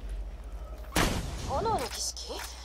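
A barrel explodes with a sudden loud boom.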